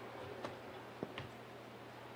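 A ball is kicked with a sharp thud.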